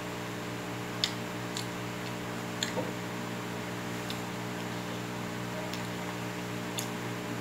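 A metal spoon clinks against a bowl a few times.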